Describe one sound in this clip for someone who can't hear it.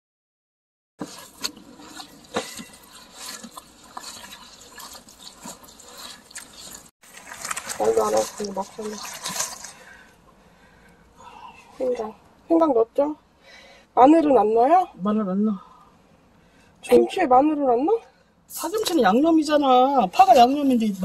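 A gloved hand squelches and mixes a thick wet paste in a plastic bowl.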